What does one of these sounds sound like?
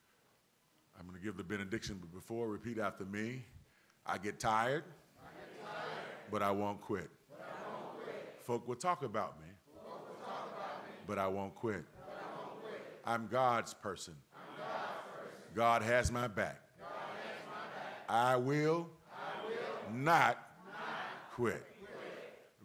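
A man speaks with fervour into a microphone in a large echoing hall.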